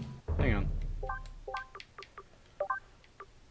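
Short electronic menu beeps chime in quick succession.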